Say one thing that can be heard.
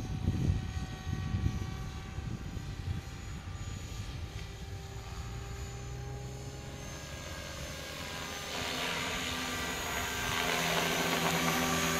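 A small model helicopter whines overhead, growing louder as it comes closer.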